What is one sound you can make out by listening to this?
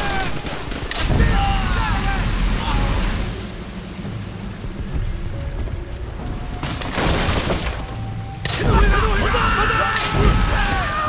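A flamethrower roars as it spews fire.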